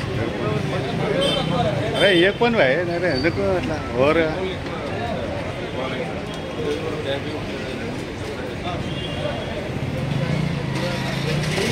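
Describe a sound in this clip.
A police officer talks calmly nearby.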